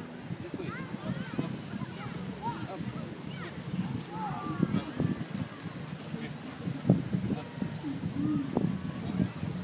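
A dog pants heavily close by.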